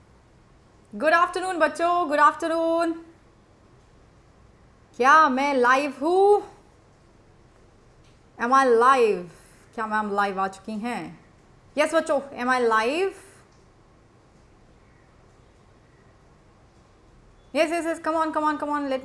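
A young woman speaks calmly into a close microphone, in short bursts with pauses.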